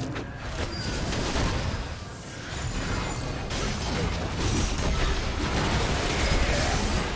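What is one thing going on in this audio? Magical blasts and clashing blows crackle and boom in a busy fight.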